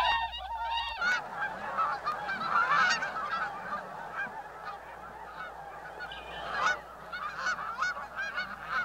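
A large flock of ducks quacks and chatters.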